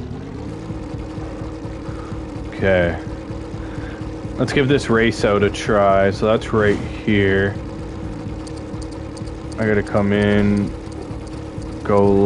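A small engine hums steadily.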